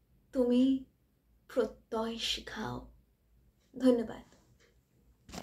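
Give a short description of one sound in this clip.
A girl speaks clearly and calmly, close to a microphone.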